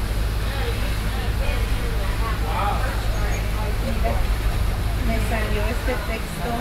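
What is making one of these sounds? Adults chat nearby at a moderate distance.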